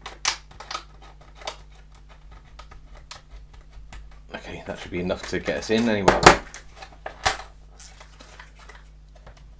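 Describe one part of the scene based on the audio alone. A plastic blister pack crinkles and clicks as hands handle it.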